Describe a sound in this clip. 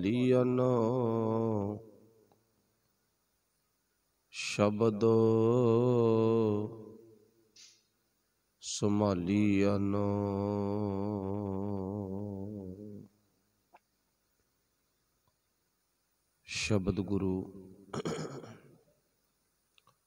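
A man sings a slow, long-held chant into a microphone, with pauses between phrases.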